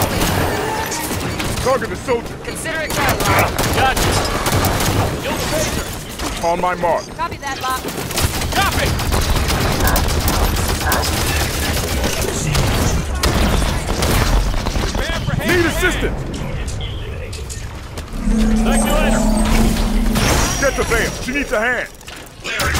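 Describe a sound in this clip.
Gunfire and explosions rattle in a video game.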